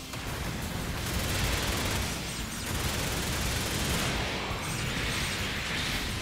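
Robot engines whoosh and boost loudly.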